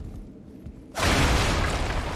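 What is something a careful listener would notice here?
A heavy blow lands with a loud rushing burst.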